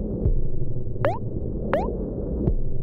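Short rising menu blips chirp twice.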